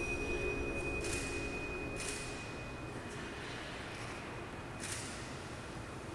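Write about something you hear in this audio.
Shoes scuff and slide on a hard floor in a large echoing hall.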